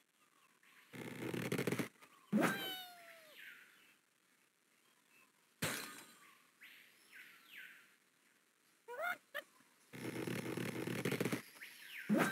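A slingshot creaks as it is pulled back.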